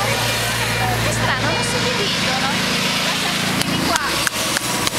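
Motorcycles rumble past.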